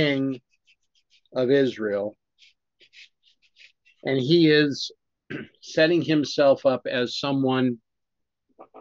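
A middle-aged man speaks calmly and closely into a microphone, reading out in pauses.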